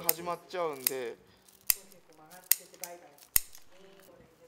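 Scissors snip sharply several times.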